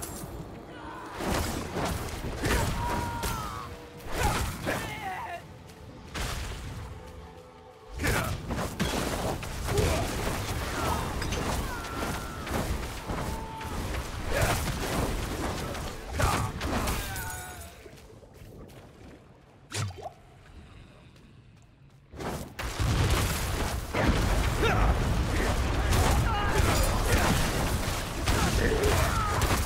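Spells burst and crackle with fiery blasts.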